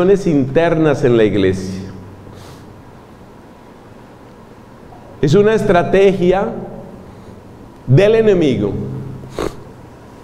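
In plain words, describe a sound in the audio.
A man speaks into a microphone with animation, with pauses between phrases.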